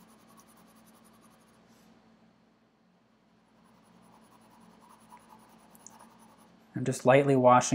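A pencil softly scratches and shades on paper.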